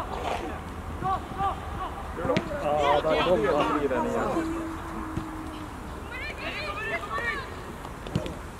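Men shout to each other in the distance outdoors.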